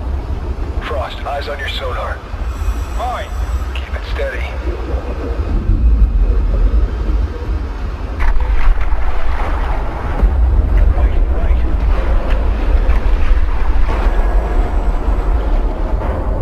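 A spacecraft engine rumbles deeply and steadily.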